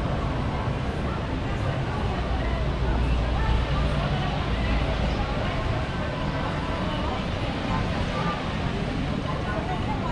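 Men and women chat in a low murmur at nearby tables, outdoors.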